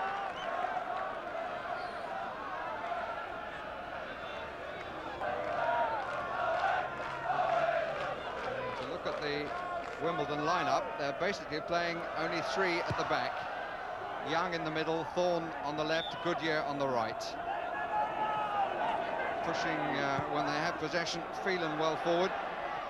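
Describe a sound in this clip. A large crowd roars and chants steadily outdoors.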